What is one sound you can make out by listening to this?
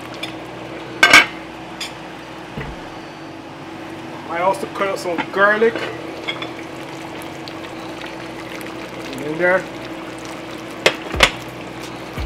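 A metal pot lid clanks against a pot.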